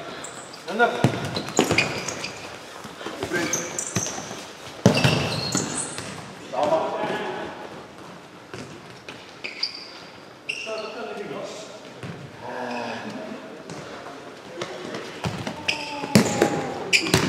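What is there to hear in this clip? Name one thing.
A ball is kicked hard across an echoing indoor court.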